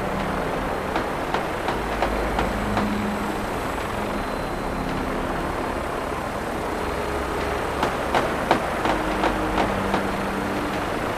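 Rapid gunshots crack in short bursts.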